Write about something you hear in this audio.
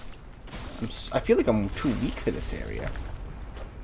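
Metal weapons clash and strike.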